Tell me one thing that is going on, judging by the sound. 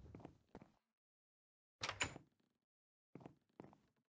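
A wooden door opens with a knock.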